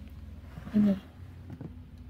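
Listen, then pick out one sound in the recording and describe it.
Soft fabric rustles as a folded shirt is picked up.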